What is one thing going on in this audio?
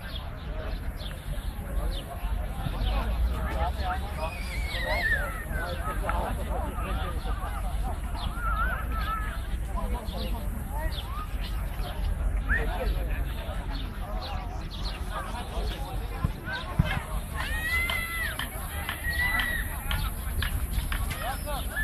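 A crowd of men, women and children chatters outdoors at a distance.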